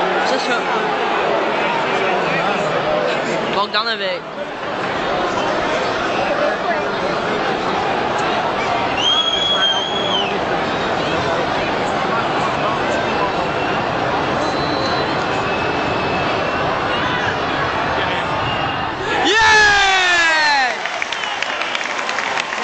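A football crowd chatters and murmurs outdoors in an open stadium.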